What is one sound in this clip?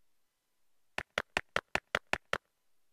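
Quick, light video game footsteps patter in an even rhythm.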